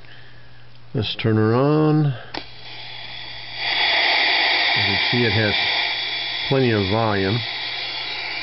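A radio receiver squeals with whistling tones that swoop up and down as it is tuned.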